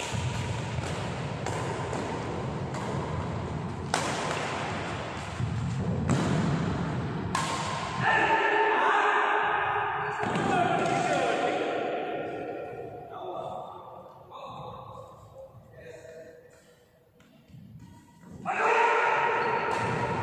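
Badminton rackets smack a shuttlecock back and forth in a large echoing hall.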